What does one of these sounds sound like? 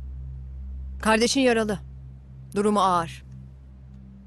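A young woman speaks calmly and curtly, close by.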